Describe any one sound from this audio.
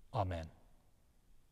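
A man speaks briefly and calmly into a nearby microphone.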